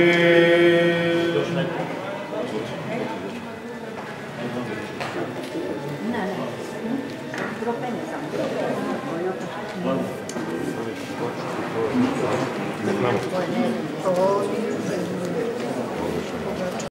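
A crowd of men and women murmur and talk quietly in a room with some echo.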